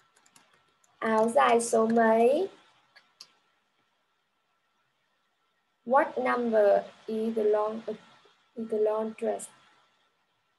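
A young woman speaks clearly and with animation through an online call.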